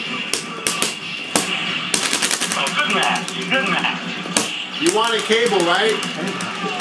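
Rapid punches and blasts from a fighting game crack and thud through a small speaker.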